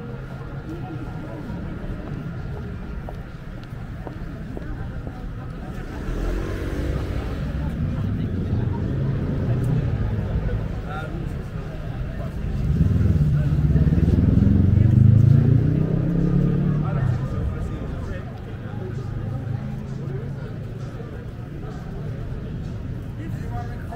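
Footsteps tap on paving stones close by.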